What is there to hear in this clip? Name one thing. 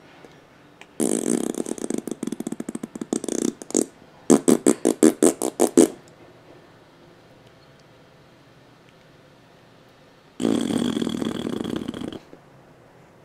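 A baby laughs and squeals loudly close by.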